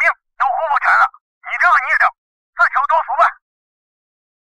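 A man talks into a phone with agitation, close by.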